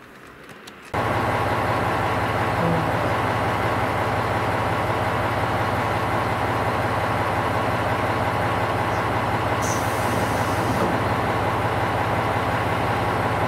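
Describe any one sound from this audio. A diesel train engine idles with a steady, loud hum.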